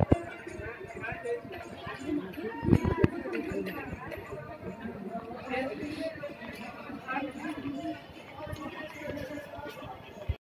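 Many people chatter in a busy street crowd outdoors.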